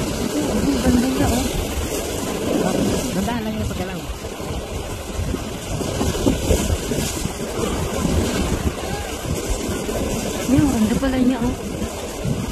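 Wind gusts loudly outdoors, rumbling and buffeting.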